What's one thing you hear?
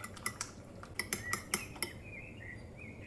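A fork clinks against a bowl while whisking.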